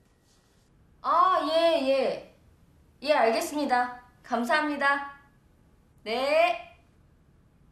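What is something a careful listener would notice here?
A young woman talks with animation on a phone, then thanks the caller.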